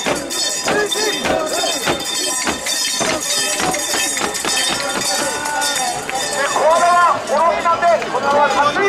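A man shouts into a microphone through a loudspeaker.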